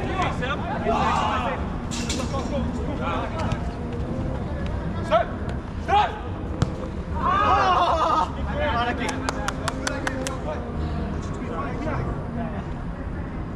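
Young men shout and call out to each other across an open outdoor space.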